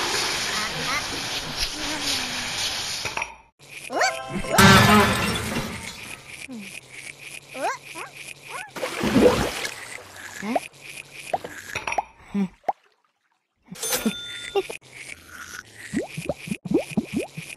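A toothbrush scrubs teeth with quick strokes.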